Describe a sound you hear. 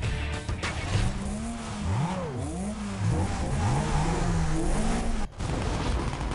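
Car engines idle and rev with a deep rumble.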